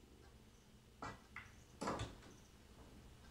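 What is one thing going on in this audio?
Pool balls knock together sharply.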